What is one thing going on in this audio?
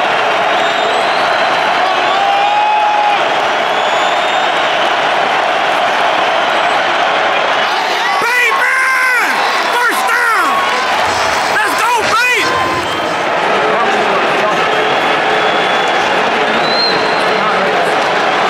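A large stadium crowd roars and cheers steadily all around.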